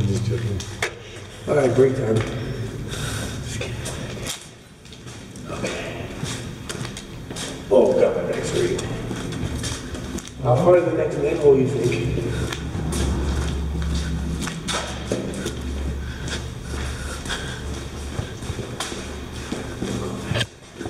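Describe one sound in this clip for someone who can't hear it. Clothes and shoes scrape and knock against the walls of an echoing metal pipe.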